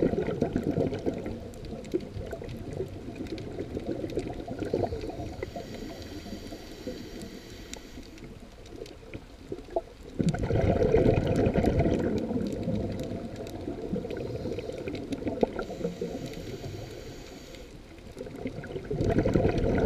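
Water churns and rumbles, heard muffled underwater.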